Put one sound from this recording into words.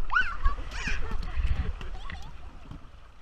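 A young girl shouts excitedly close by.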